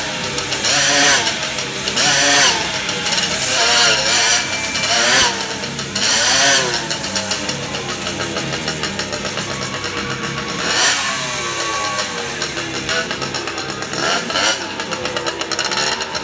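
A motorcycle engine revs loudly, rising and falling over and over.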